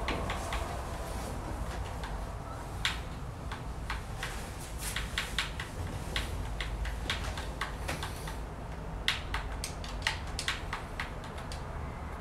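A ball thumps and rattles against a small hoop.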